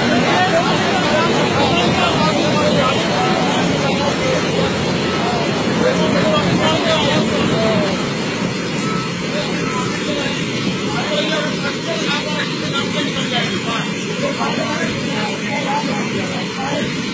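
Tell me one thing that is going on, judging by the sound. A torrent of water roars loudly down a rocky slope.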